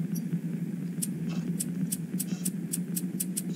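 A computer mouse clicks several times in quick succession.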